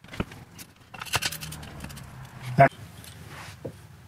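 A metal clamp snaps shut with a click.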